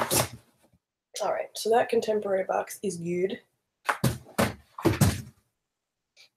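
A cardboard box rustles and thumps.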